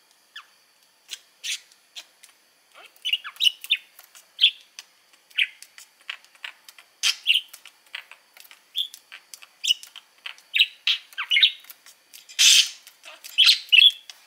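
A budgerigar pecks at a hanging seed ball with light clicks.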